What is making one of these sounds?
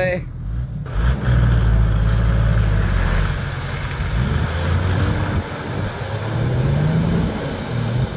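An off-road vehicle engine revs as it drives away through mud.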